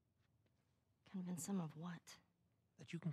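A young woman asks a question in a questioning tone.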